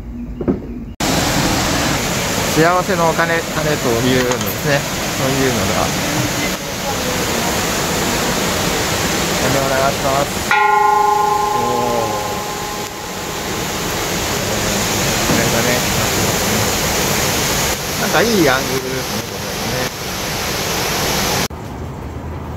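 A waterfall rushes and roars steadily nearby.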